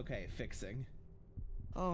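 A man speaks with animation into a close microphone.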